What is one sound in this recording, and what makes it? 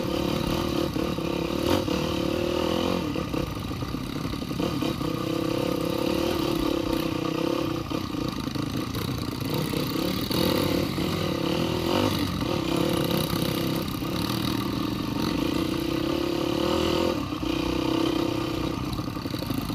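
A dirt bike engine drones close by, rising and falling with the throttle.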